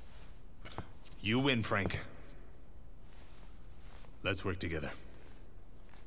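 A deep-voiced man answers calmly.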